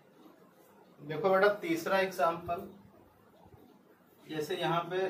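A man speaks calmly and clearly nearby, as if explaining.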